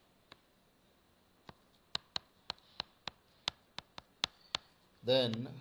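A stylus taps sharply on a tablet.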